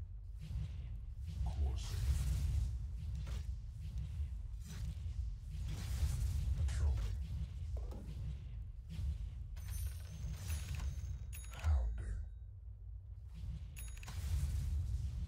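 Magic spells whoosh and crackle in a fantasy game battle.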